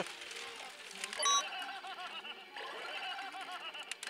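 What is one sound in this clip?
A pachinko machine plays electronic music and jingles.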